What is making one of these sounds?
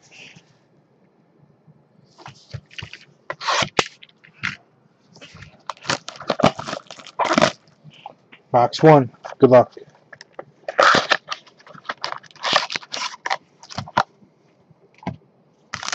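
Cardboard boxes are picked up and set down with soft knocks and scrapes.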